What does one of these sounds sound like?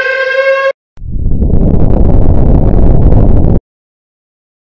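A loud explosion roars and rumbles.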